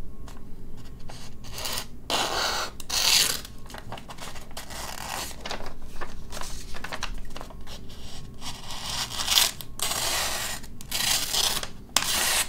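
A sheet of paper rustles and crinkles.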